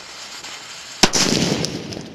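A firework bursts with a sharp bang.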